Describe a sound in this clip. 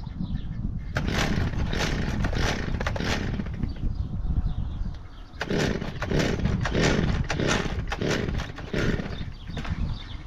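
A small petrol engine roars in loud bursts.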